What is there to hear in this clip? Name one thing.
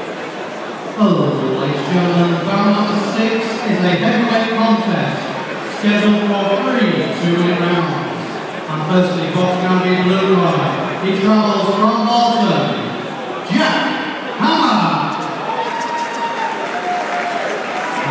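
A man announces loudly over a loudspeaker, echoing through the hall.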